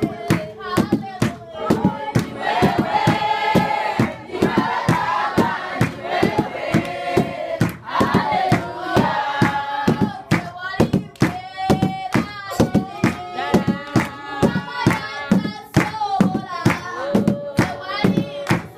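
A man beats drums with sticks in a steady rhythm.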